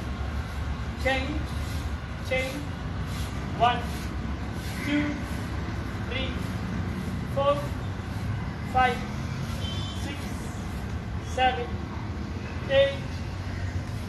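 A man counts out loud in short, evenly spaced calls.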